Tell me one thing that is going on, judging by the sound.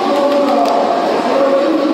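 Young men shout and cheer excitedly nearby.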